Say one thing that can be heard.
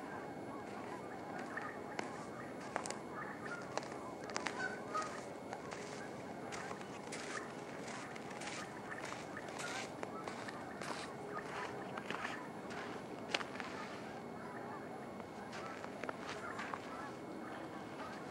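Birds call now and then from a distance across open water.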